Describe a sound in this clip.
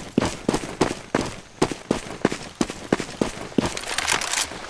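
Quick footsteps crunch on the ground.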